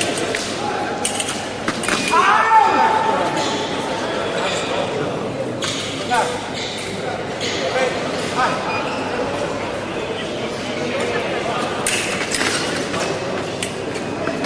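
Blades clash and click sharply.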